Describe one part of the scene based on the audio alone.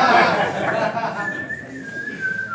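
Several young men laugh together close by.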